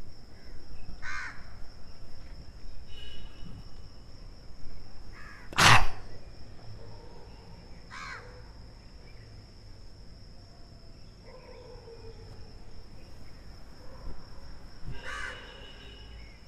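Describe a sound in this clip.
An elderly man breathes out sharply and forcefully in short bursts.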